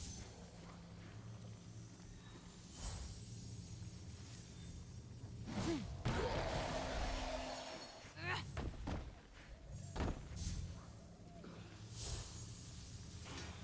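A magical energy beam crackles and hums.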